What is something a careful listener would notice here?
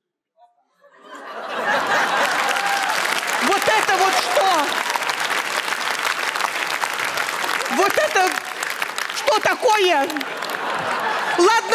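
An audience laughs and applauds loudly in a large hall.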